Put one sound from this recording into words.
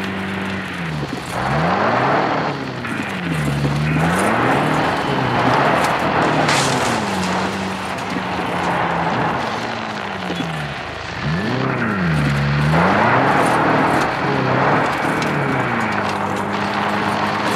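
A car engine revs up and down as it drives.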